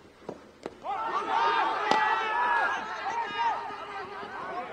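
Young men on the field shout loudly in an appeal.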